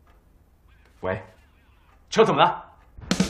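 A man speaks with alarm into a phone.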